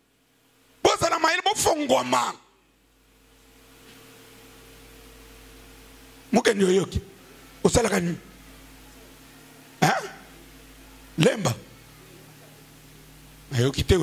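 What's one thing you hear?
A middle-aged man preaches forcefully into a microphone through loudspeakers, in short bursts with pauses, in an echoing hall.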